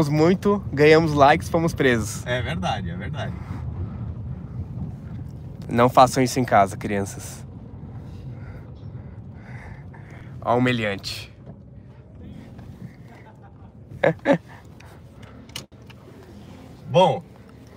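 A young man talks and laughs with animation close by.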